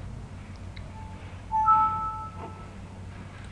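A computer alert chime sounds once.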